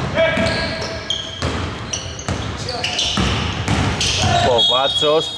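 A basketball bounces on the court with dull thumps.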